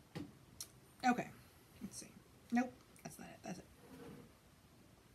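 A woman talks calmly, close by.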